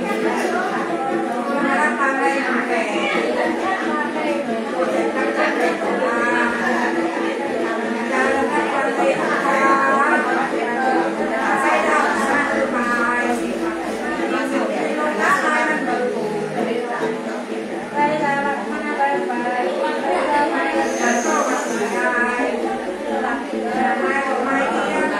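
An elderly woman chants a song in a steady, droning voice close by.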